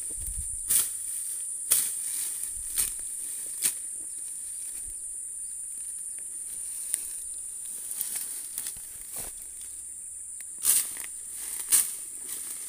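Leaves and twigs rustle and crackle as a person moves through dense undergrowth.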